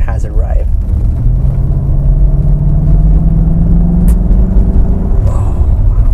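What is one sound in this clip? A car engine hums and rises in pitch as the car speeds up.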